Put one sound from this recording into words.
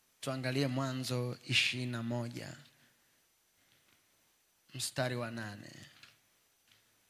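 A young man speaks calmly into a microphone in a large echoing room.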